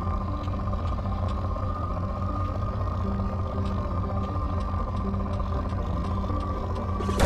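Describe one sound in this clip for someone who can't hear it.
An electronic scanner hums with a steady low drone.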